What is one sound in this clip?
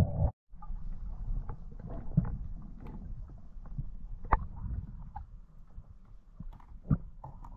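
Water rumbles and swirls, heard muffled from underwater.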